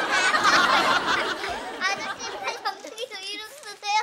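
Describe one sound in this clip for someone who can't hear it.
A young boy laughs.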